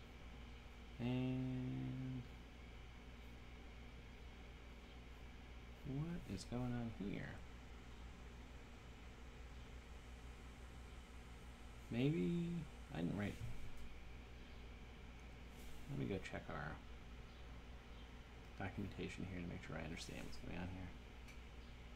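A man talks calmly into a close microphone, in short phrases with pauses.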